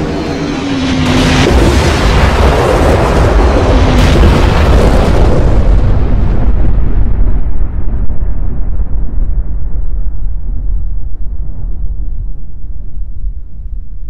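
A huge explosion booms and rumbles deeply, slowly fading.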